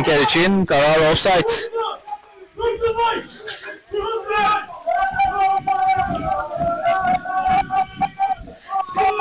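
Young men shout to each other across an open outdoor pitch.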